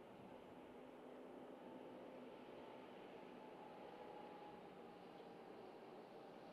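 A tractor engine hums as it drives past.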